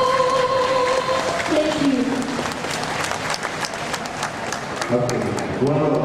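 An audience claps in a large hall.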